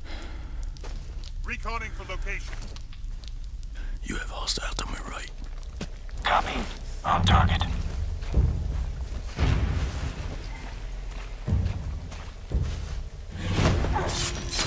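Footsteps crunch on a forest floor.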